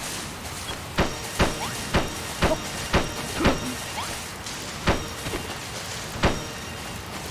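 A game character's sword strikes thud and clang in quick succession.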